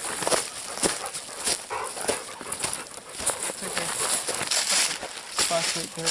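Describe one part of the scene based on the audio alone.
Footsteps crunch on dry leaves and twigs.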